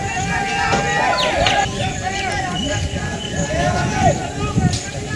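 A crowd of men shouts and chants from a distance, outdoors.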